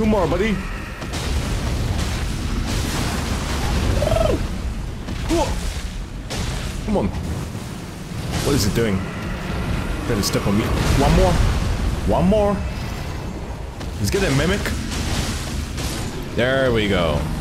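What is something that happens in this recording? A blade slashes and strikes with sharp hits.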